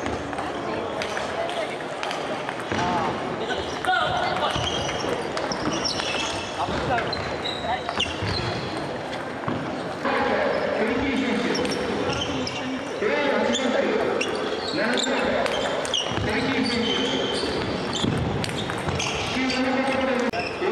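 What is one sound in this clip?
Sports shoes squeak on a wooden floor.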